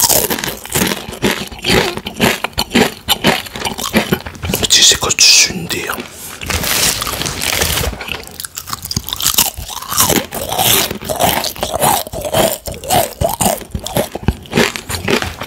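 A man crunches loudly on crisp snacks close to a microphone.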